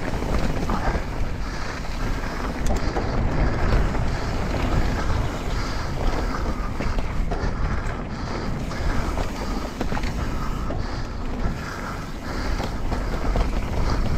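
Bike tyres crunch and rumble over a dirt trail.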